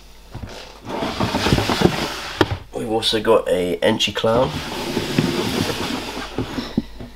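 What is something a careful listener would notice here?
A plastic drawer slides open with a scraping rattle.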